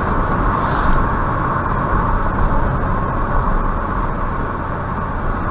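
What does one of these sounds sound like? A car engine drones steadily.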